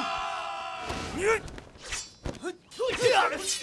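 A man swings a sword with a sharp swish.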